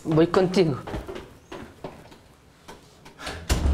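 Footsteps thud slowly down wooden stairs.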